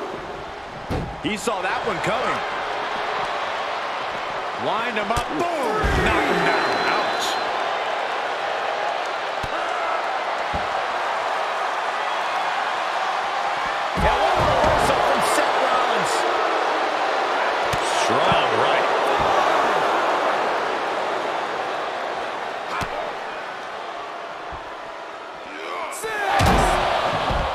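Wrestlers' bodies thud heavily onto a floor.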